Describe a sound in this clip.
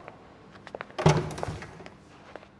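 A door swings open with a thud.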